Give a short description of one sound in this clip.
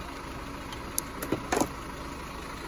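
Small plastic clicks and taps come as a hand handles test leads.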